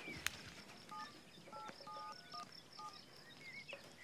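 Mobile phone keys beep as a woman dials.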